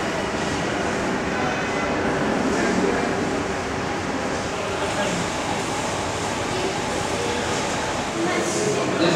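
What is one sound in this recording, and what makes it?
Several men murmur quietly in a hall with a slight echo.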